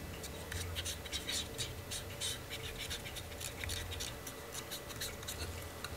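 A cotton swab scrubs softly inside a small metal part.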